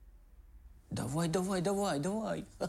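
A young man speaks loudly and close by.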